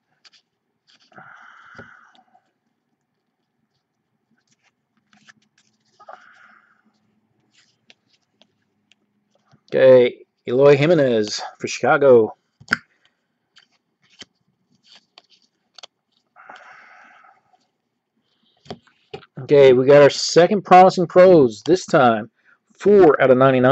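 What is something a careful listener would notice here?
Trading cards are shuffled and flicked through by hand.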